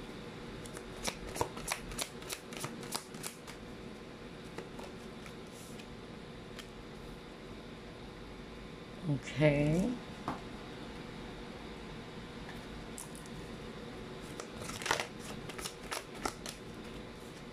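Playing cards are shuffled with quick, soft flicks.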